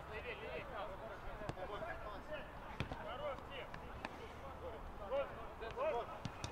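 Players shout and call out across an outdoor pitch.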